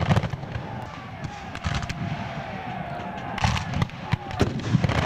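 Muskets fire in ragged volleys across an open field, some close and some far off.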